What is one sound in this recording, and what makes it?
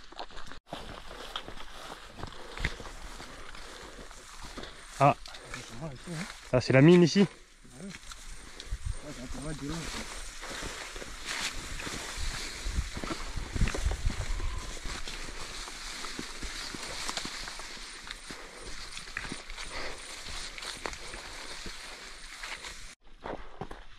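Tall grass swishes and rustles as people walk through it.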